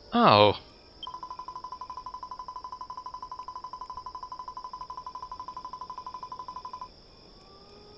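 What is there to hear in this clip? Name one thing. Rapid, even blips tick as dialogue text types out in a game.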